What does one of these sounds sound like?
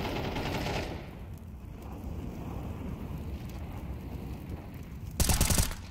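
An incendiary fire crackles and roars on the ground.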